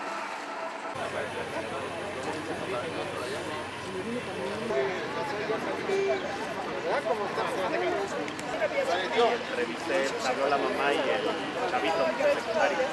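A crowd of men and women talks and calls out outdoors.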